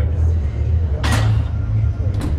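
A heavy barbell clanks into its rack.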